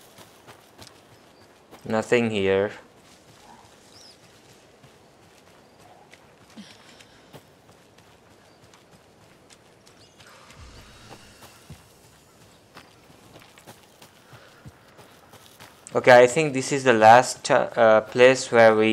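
Footsteps crunch softly on leaves and dirt.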